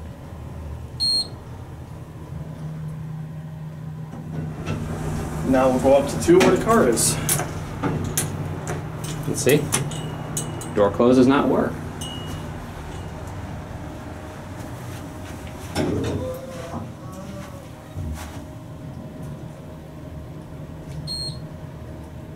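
An elevator chime rings brightly.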